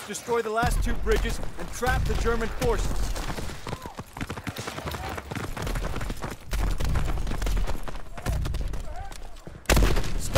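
Rifles and machine guns fire in rapid bursts.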